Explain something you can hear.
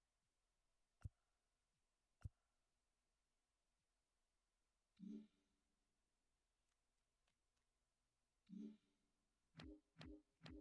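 Short electronic menu clicks and chimes sound now and then.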